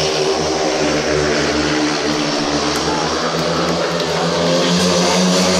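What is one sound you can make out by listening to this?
Motorcycle engines roar and whine around a track.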